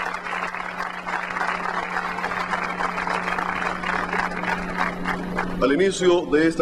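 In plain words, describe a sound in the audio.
A large crowd applauds and cheers outdoors.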